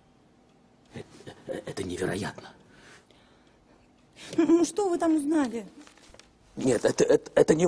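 A young woman speaks with emotion close by.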